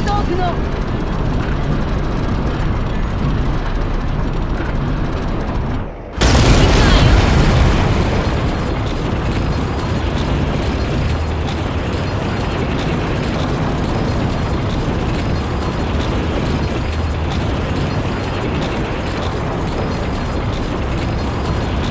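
Tank treads clatter and grind over the ground.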